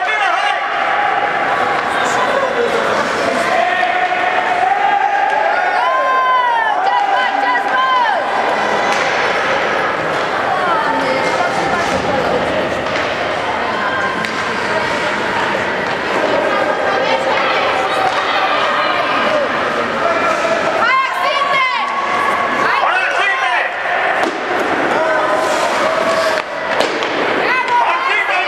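Women and children shout and cheer loudly in a large echoing arena.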